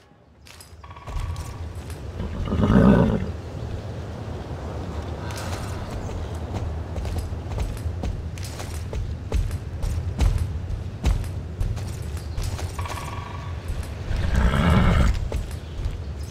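A horse's hooves clop steadily on stone.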